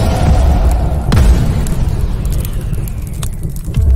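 A fiery explosion booms with a deep rumble.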